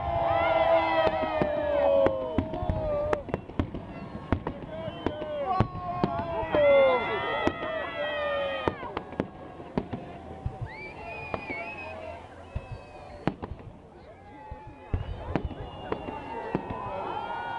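A crowd of spectators nearby cheers and shouts excitedly.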